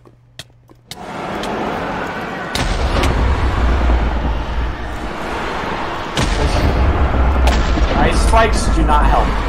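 A dragon breathes a roaring blast of fire.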